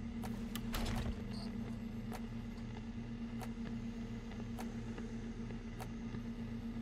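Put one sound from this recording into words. Short soft clicks sound as menu options are selected.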